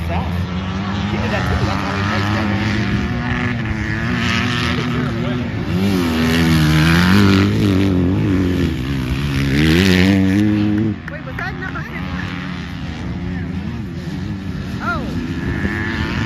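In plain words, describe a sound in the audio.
Dirt bike engines rev and whine across an open outdoor track.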